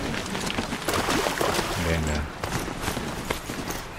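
Water splashes as a mount wades through a stream.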